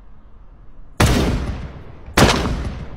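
A shotgun fires loud blasts close by.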